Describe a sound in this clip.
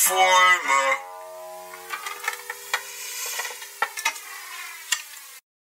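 An acoustic guitar is plucked, its notes ringing out.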